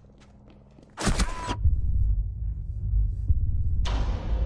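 A pistol fires sharp shots.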